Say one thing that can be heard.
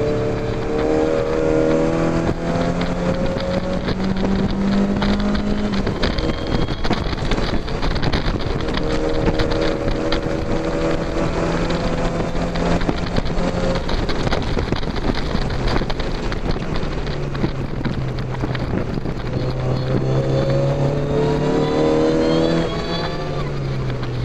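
A car engine roars loudly, revving up and down through the gears.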